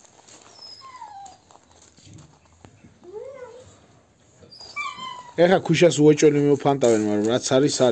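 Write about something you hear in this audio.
A dog scrapes and digs at loose soil with its paws.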